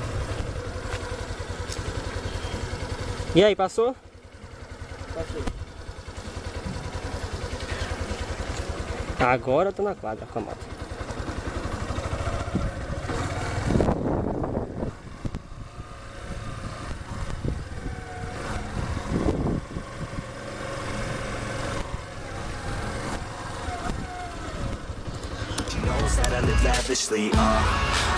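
A motorcycle engine idles and revs nearby.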